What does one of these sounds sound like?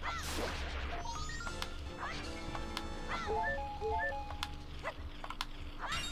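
A tinkling jingle plays as an item is collected.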